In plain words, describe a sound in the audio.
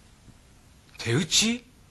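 A young man speaks urgently, close by.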